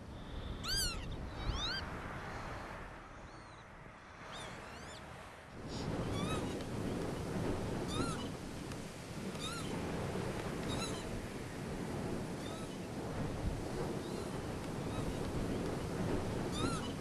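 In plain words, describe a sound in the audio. A bird calls repeatedly with shrill, rising and falling cries.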